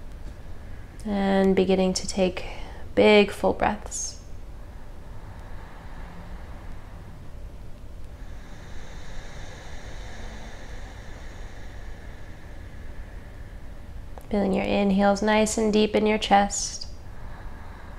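A young woman speaks calmly and slowly, close by.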